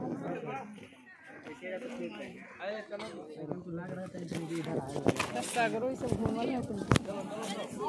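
Several men and women talk nearby with animation, outdoors.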